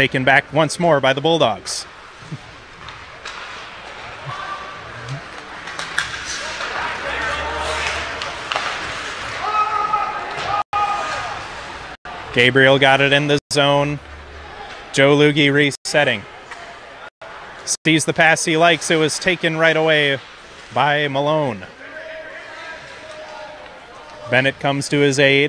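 Ice skates scrape and hiss across an ice rink.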